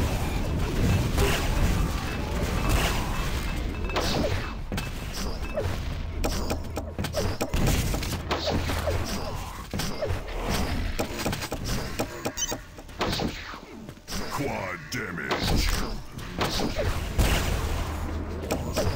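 Weapons fire and explode in quick bursts.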